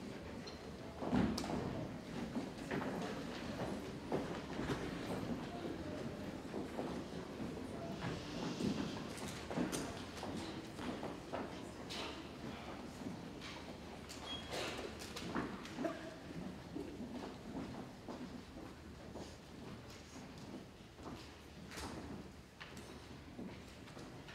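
An audience murmurs softly.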